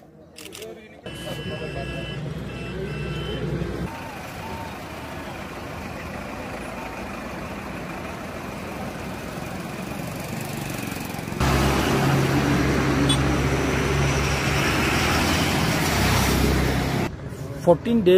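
Bus engines rumble as buses drive past on a road.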